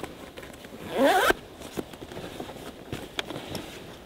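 Fabric rustles up close.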